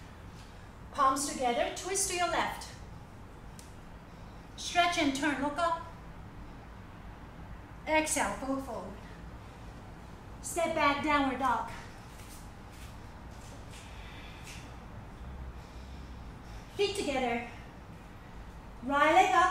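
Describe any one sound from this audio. A young woman speaks calmly in short phrases close by, with pauses between them.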